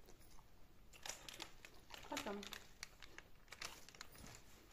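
A plastic snack bag crinkles and rustles close by.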